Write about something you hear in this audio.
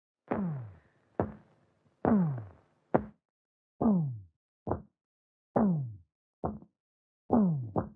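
A young woman moans softly, close by.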